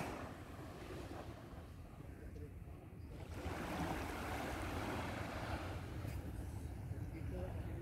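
Small waves lap gently against a sandy shore.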